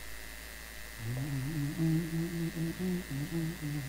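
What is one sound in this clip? A crowd of men and women sings together.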